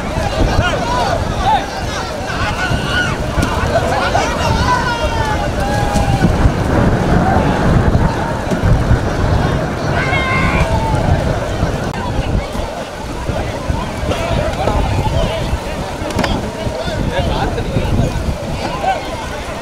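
Water splashes as people wade through a river.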